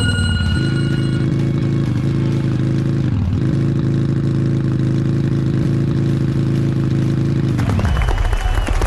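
A motorbike engine drones steadily, dipping briefly as it lands a jump.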